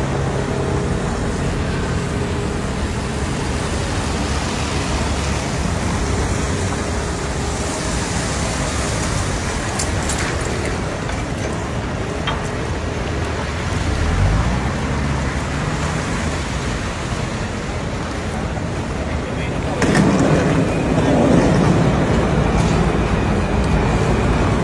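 Rain patters steadily on wet pavement.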